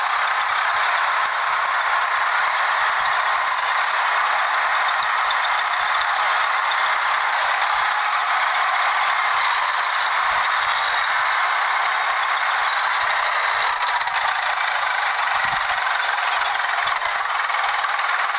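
A tractor engine runs with a steady loud drone.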